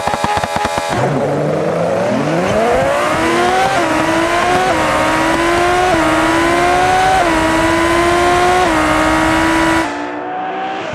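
A supercar engine accelerates hard through the gears, rising in pitch with each shift.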